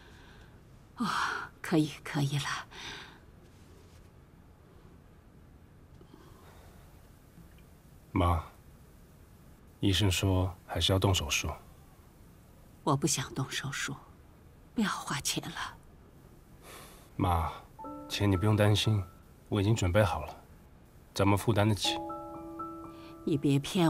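A man speaks gently and reassuringly, close by.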